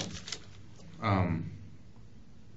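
A second man answers briefly in a low voice.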